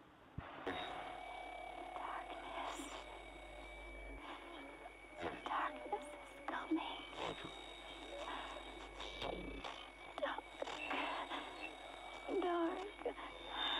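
An old radio crackles and hisses with muffled, tinny sounds.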